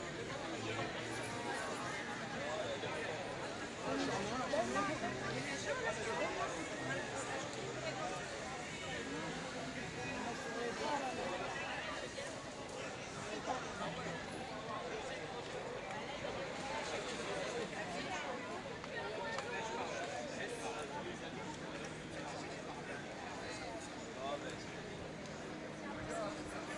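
A crowd of people talks and murmurs all around outdoors.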